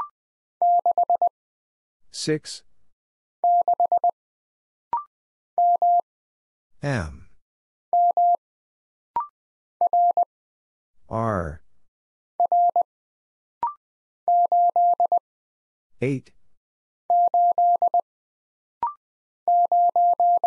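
A Morse code key taps out short, even beeps in quick bursts.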